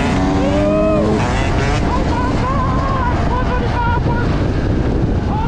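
A motorcycle engine revs and drones up close.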